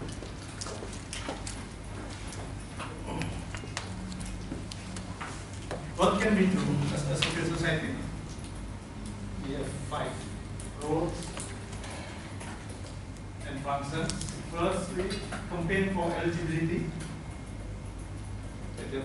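A middle-aged man speaks calmly into a microphone in a room with some echo.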